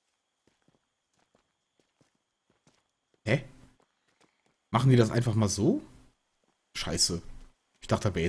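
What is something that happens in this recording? Footsteps tread on dirt and gravel.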